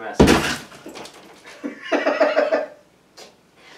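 A woman laughs nearby.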